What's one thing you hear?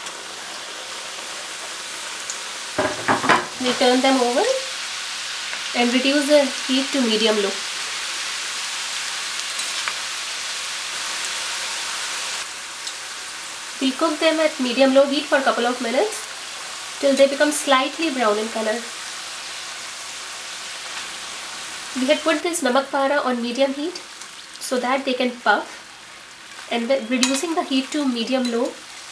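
Hot oil sizzles and crackles steadily as food fries.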